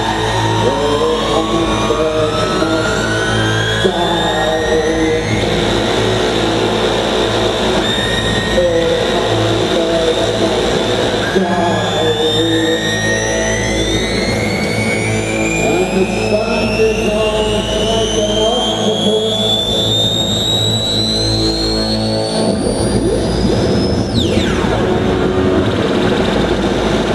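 Electronic music with rising, gliding tones plays over a concert sound system in a large hall.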